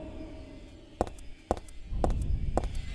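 Footsteps clack on a hard tiled floor.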